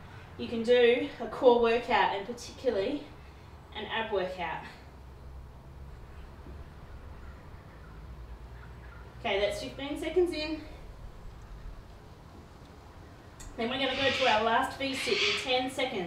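A woman talks calmly and steadily, close by.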